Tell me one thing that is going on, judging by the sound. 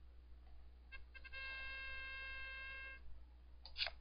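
A computer game plays an electronic chime.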